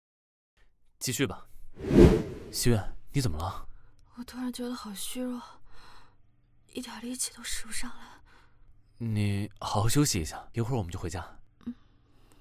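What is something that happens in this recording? A young man speaks with concern, close by.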